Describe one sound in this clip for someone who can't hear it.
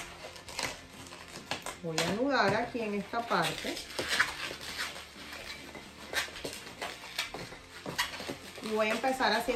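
Balloons rustle and tap under handling.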